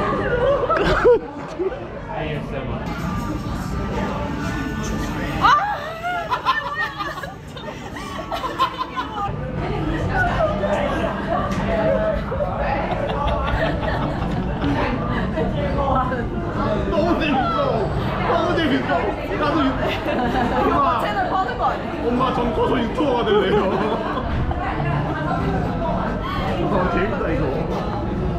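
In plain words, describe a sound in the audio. A young man talks and laughs with animation close by.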